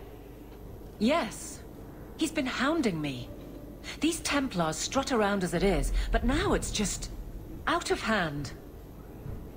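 A woman speaks calmly and firmly.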